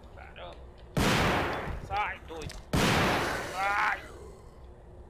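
A handgun fires loud shots.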